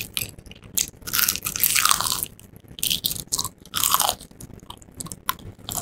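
A woman crunches and chews crispy food close to a microphone.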